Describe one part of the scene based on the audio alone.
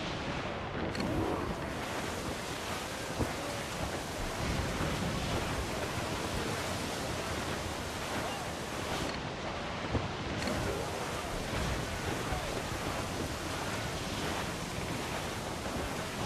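Strong wind howls through a ship's rigging.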